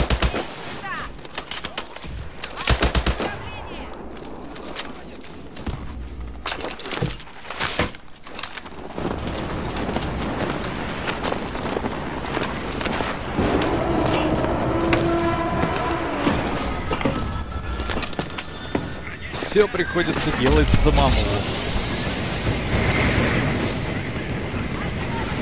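Gunfire rattles in short bursts.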